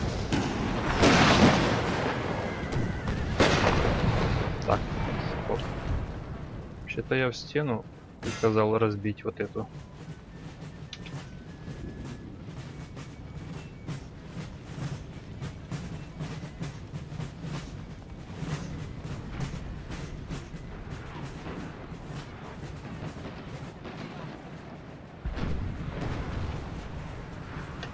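Muskets crackle in scattered volleys.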